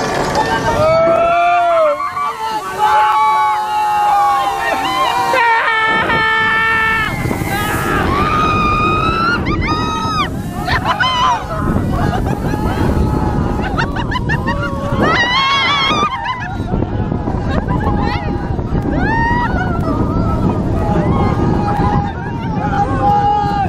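Riders scream and shriek with excitement.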